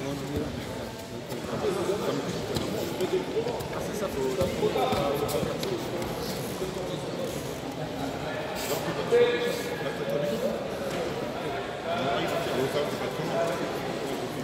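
Voices murmur and talk throughout a large echoing hall.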